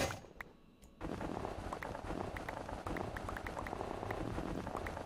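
A block crumbles with quick repeated digging taps.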